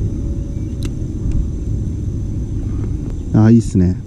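A fishing reel clicks as its handle is turned.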